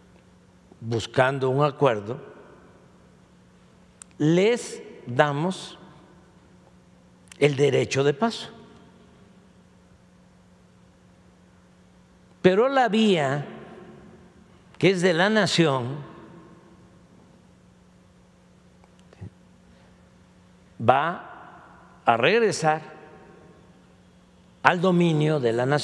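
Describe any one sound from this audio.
An elderly man speaks slowly into a microphone, with long pauses, in a large echoing hall.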